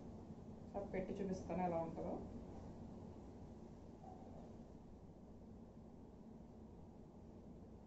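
Clothes rustle as a woman folds them.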